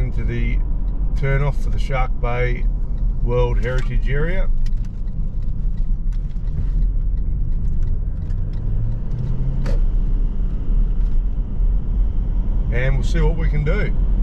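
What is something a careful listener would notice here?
A car engine hums steadily with road rumble inside the car.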